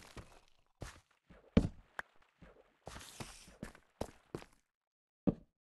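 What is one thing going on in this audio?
Footsteps thud on stone at a steady walking pace.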